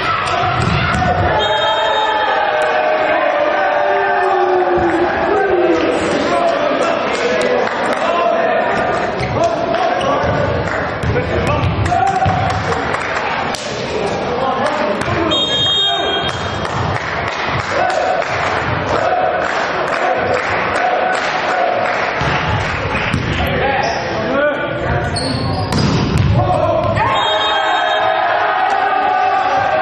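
Young men shout and call to each other across a court in an echoing hall.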